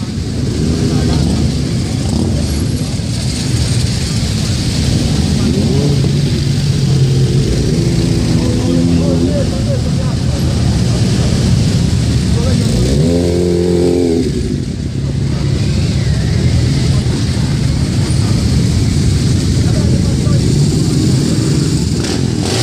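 A motorcycle engine revs up and rides past close by.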